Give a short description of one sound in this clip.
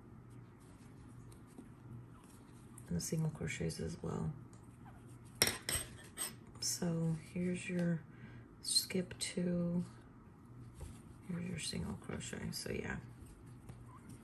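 A crochet hook softly pulls yarn through stitches.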